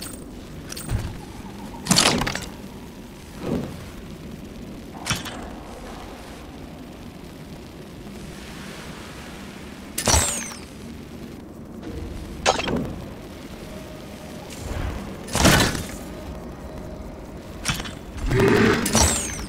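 Short game menu clicks and whooshes sound every few seconds.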